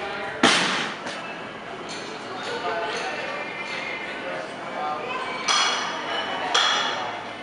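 Weight plates on a barbell clank against the floor and ring.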